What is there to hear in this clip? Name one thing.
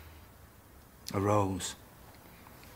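A woman replies softly, close by.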